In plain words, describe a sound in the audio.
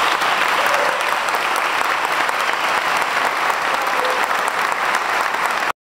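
An audience applauds loudly in an echoing hall.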